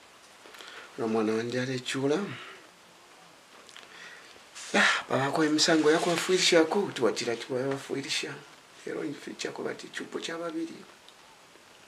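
An elderly man speaks slowly and with emotion, close by.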